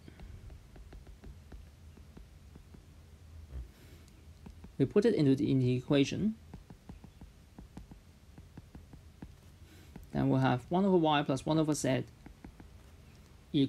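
A stylus taps and scratches softly on a tablet.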